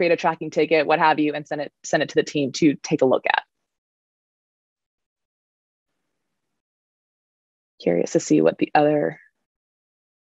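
A woman talks calmly through an online call.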